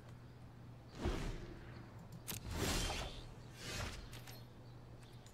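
Digital game effects whoosh and chime in short bursts.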